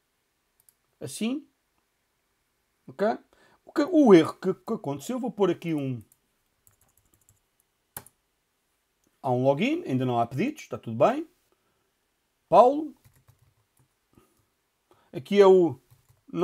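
A man talks calmly into a close microphone, in short phrases with pauses.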